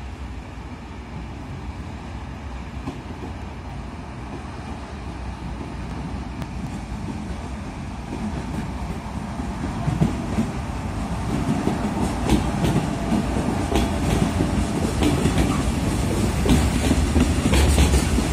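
A diesel locomotive rumbles closer, its engine growing louder.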